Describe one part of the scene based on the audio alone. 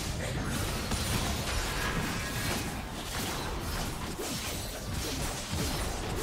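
Spell effects crackle and burst in a busy fight.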